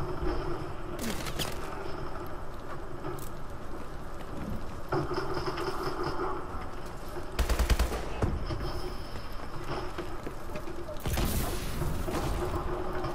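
Gunfire bursts loudly in short volleys.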